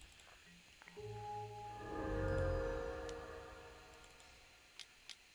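A computer card game plays a chiming sound effect.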